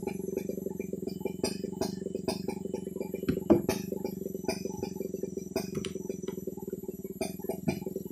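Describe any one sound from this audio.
Wooden planks knock and scrape against each other.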